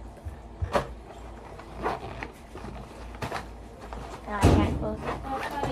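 A plastic pouch crinkles and taps as it is handled.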